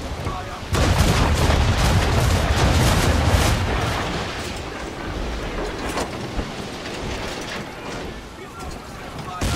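Waves rush against a ship's hull.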